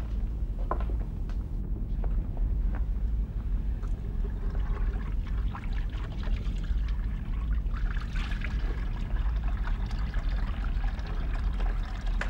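Water splashes as a man washes his face at a sink.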